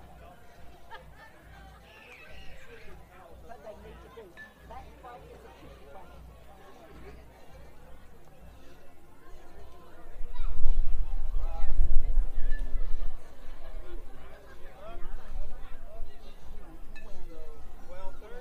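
Men talk calmly at a distance outdoors.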